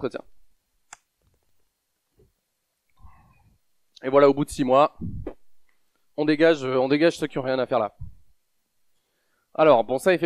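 A man speaks into a microphone, giving a talk in bursts with pauses.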